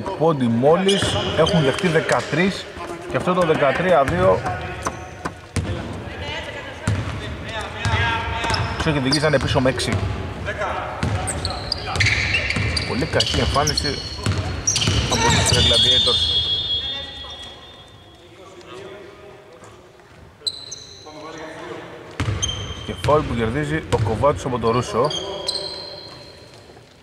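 Adult men shout to each other in a large echoing hall.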